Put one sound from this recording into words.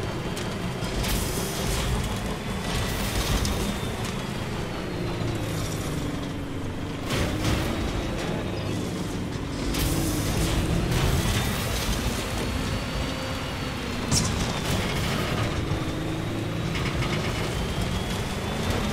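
Tyres crunch over rocks and gravel.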